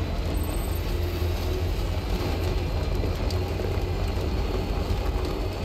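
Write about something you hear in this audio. Tyres crunch over rough, rocky ground.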